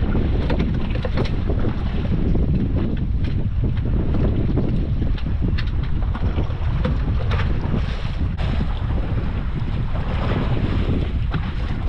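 Waves splash against the hull of a small boat.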